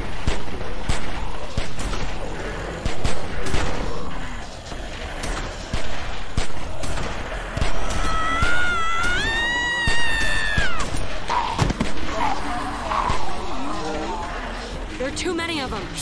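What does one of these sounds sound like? Pistol shots ring out in quick, sharp bursts.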